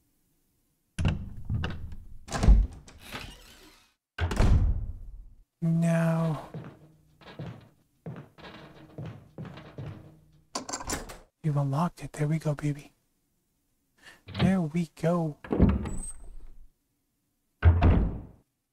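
A heavy wooden door creaks open slowly.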